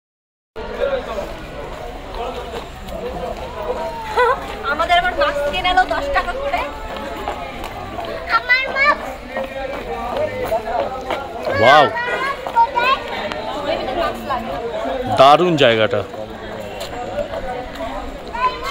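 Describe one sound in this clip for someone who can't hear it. Footsteps shuffle on pavement outdoors.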